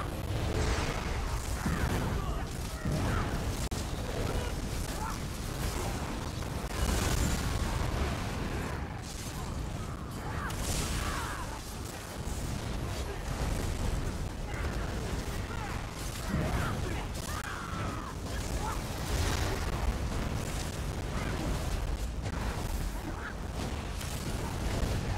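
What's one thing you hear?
Heavy blasts rumble low throughout the fight.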